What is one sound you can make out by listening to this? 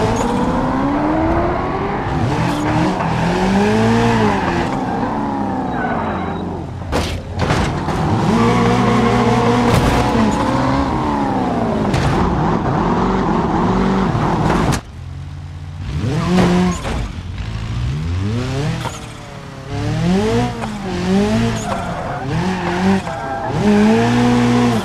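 A racing car engine revs up and down as gears shift.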